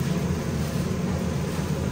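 Water pours from a tap into a metal pot.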